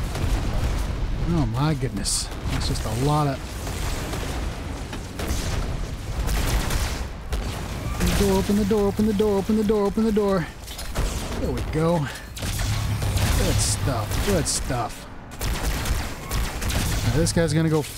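A plasma rifle fires rapid bursts of shots.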